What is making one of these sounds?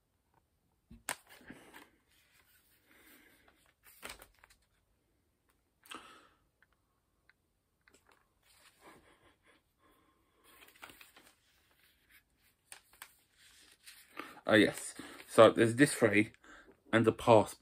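A plastic game case clicks and rattles as it is opened and handled.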